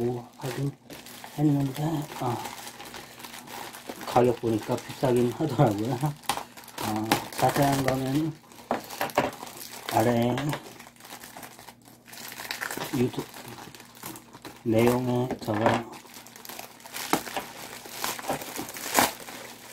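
A plastic mailing bag crinkles and rustles under handling.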